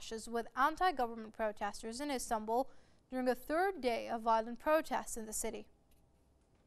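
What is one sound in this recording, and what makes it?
A young woman speaks calmly and clearly into a microphone.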